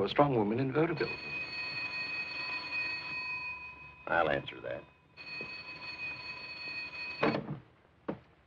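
A telephone rings steadily.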